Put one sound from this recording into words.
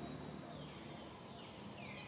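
A baby monkey squeaks in short, high cries.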